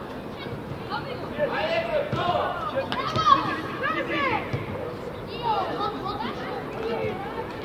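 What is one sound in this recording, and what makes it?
Young players shout and call out across an open pitch.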